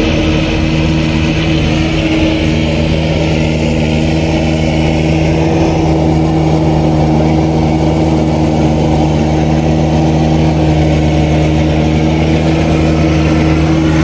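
A tractor engine chugs steadily as it drives closer.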